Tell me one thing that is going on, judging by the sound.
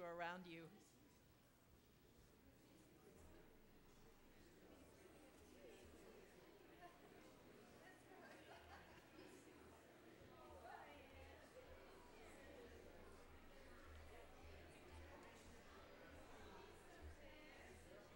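A crowd of men and women chatter and greet each other.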